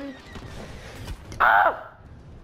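A loud explosion booms and crackles.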